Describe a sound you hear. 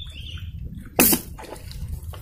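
A slingshot band snaps as a shot is fired.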